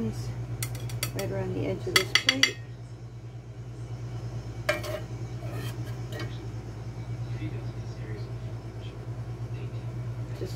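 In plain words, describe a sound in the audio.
A fork and knife clink and scrape against a plate.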